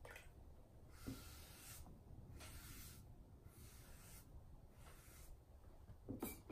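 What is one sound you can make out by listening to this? A sponge rubs and squeaks against a pottery bowl.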